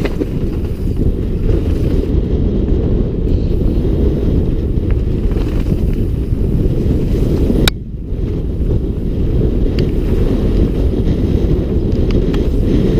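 Bicycle tyres roll and crunch over a rough dirt trail.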